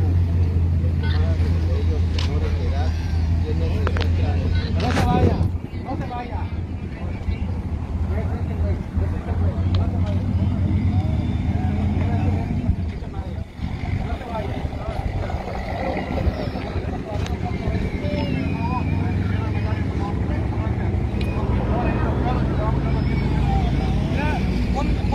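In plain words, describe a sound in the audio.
A crowd of men and women talk at a distance outdoors.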